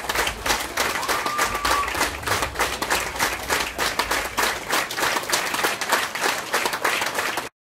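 Dancers' feet stamp rhythmically on a stage.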